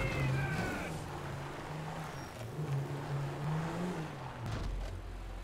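A car engine hums as a car drives over sand.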